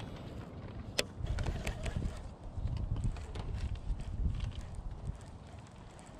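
A fishing reel clicks and rattles as it is handled.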